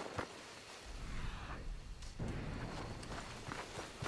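A canvas tent rustles and flaps as it is pulled down.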